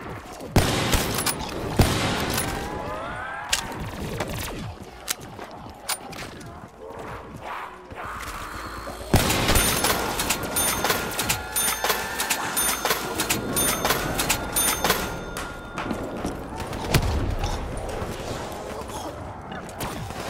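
Gunshots crack sharply, many times, in quick bursts.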